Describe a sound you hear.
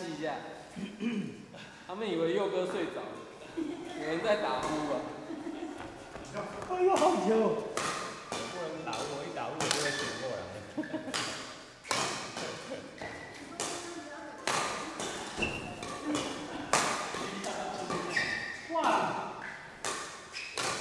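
Men talk and call out nearby in an echoing hall.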